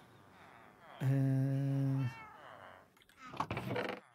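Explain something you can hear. A wooden chest creaks shut.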